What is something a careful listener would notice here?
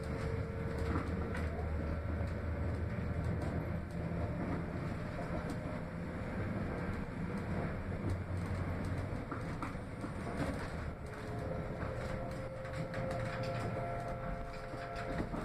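Train wheels click and rattle over rail joints.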